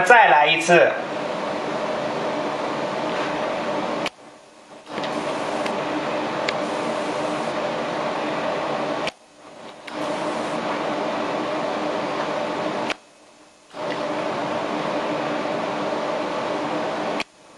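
An ultrasonic welder hums steadily, cutting out briefly now and then.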